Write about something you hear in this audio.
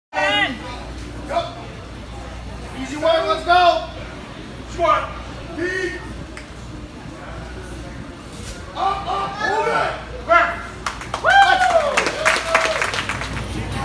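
A crowd of men and women shouts encouragement in an echoing hall.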